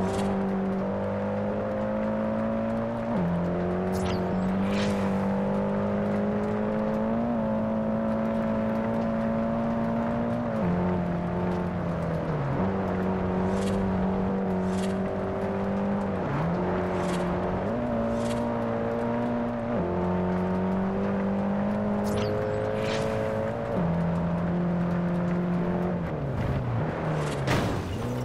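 A car engine roars steadily, its pitch jumping as gears shift.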